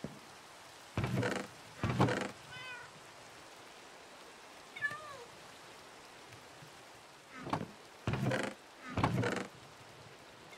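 A wooden chest creaks open and thumps shut.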